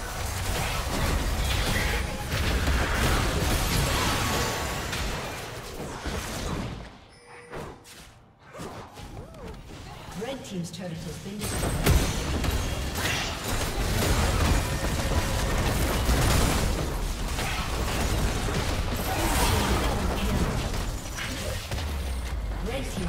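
Game combat sounds of spells and blows ring out.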